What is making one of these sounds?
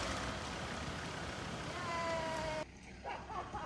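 A car engine hums and revs as an off-road vehicle crawls through mud.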